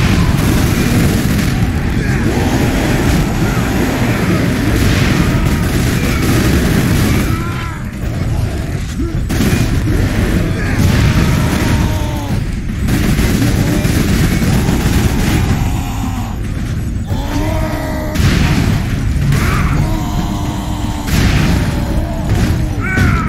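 Explosions boom with fiery bursts.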